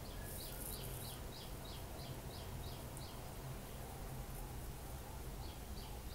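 Food sizzles in a hot wok.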